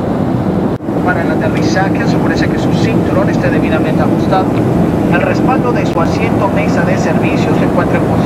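Passengers murmur and chatter nearby.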